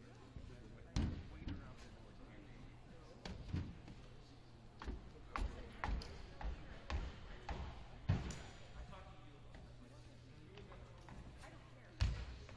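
Footsteps thud and squeak on a wooden floor, echoing in a large hall.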